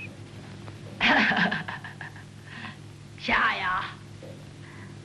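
A man laughs loudly and raspily close by.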